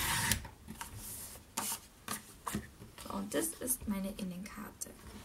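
Paper rustles and slides across a hard surface.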